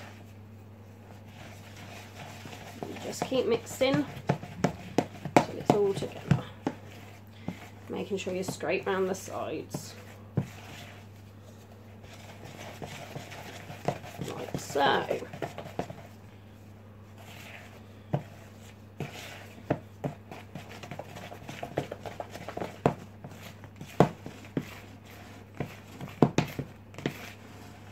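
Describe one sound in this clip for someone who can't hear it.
A wooden spoon scrapes and knocks against a plastic bowl while stirring a thick mixture.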